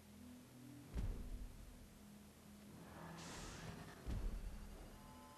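A car lands with heavy thuds.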